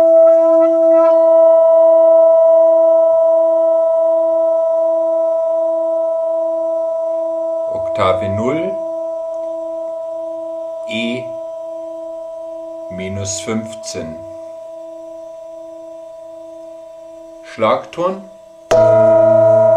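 A metal singing bowl hums with a slow, steady wavering and gradually fades.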